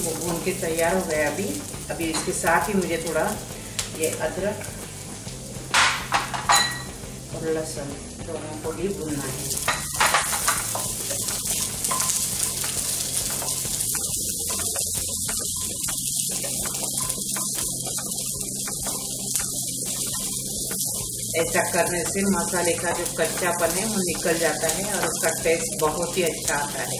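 Onions sizzle steadily in a hot pan.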